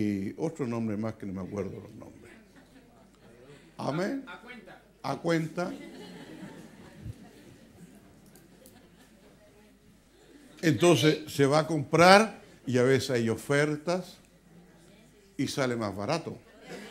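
An elderly man speaks with animation through a microphone, pausing now and then.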